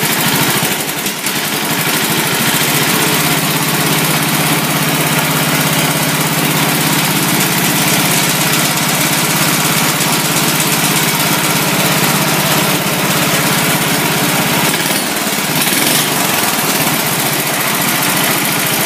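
A small engine runs loudly and steadily close by, with a rapid chugging rattle.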